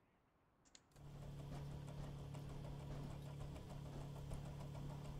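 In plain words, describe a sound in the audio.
A machine starts up and hums steadily.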